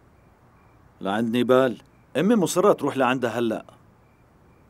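A middle-aged man speaks firmly and close by.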